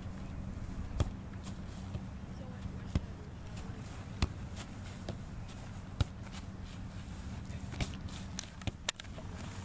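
A foot kicks a football with a dull thump.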